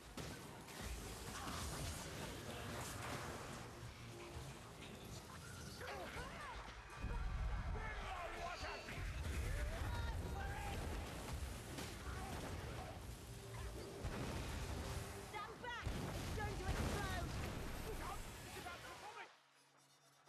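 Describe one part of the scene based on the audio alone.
Weapons clash and strike in a rough fight.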